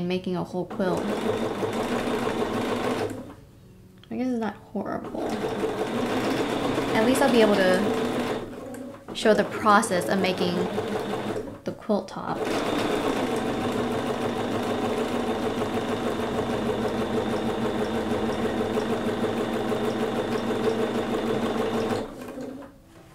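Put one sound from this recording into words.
A sewing machine stitches with a steady, fast hum.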